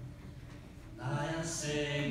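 A woman sings through a loudspeaker in a large echoing hall.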